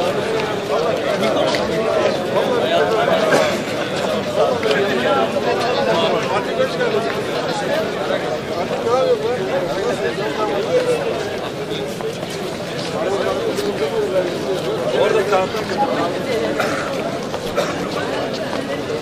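A crowd of men talks and murmurs nearby, outdoors.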